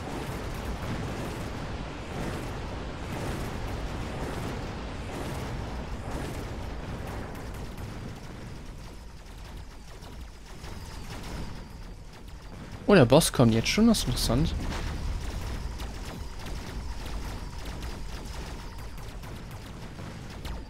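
Rapid gunfire and explosions crackle in a busy battle.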